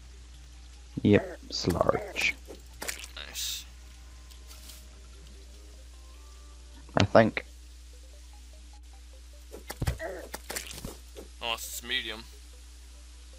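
Short game sound effects of a character being struck ring out now and then.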